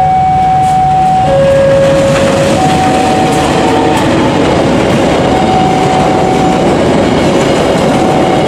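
Train wheels clatter loudly over the rails.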